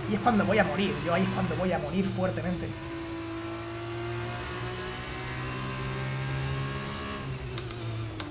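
A racing car engine whines steadily at high revs.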